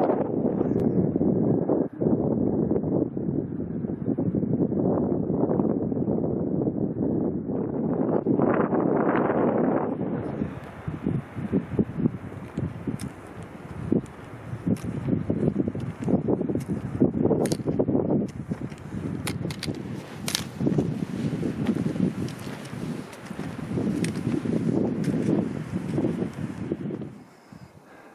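Wind blows strongly across the microphone outdoors.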